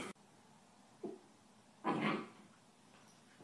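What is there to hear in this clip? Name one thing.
A puppy growls and yips.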